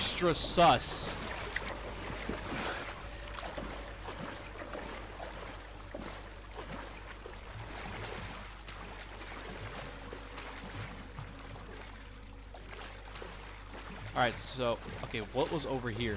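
Clothing and boots scrape on rock as someone crawls.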